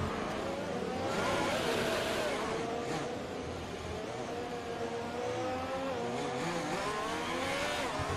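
A racing car engine slows and idles low while braking into a corner.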